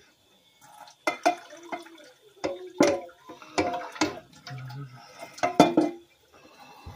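A metal pot clanks and knocks.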